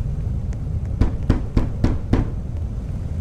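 Several knocks sound on a door.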